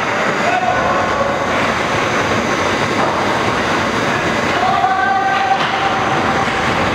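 Ice skates scrape and glide across ice in a large echoing arena.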